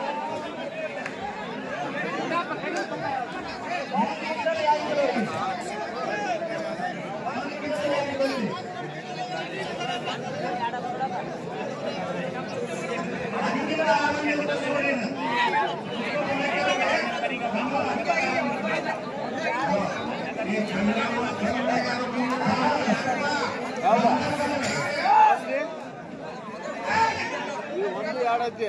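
A large outdoor crowd chatters and calls out.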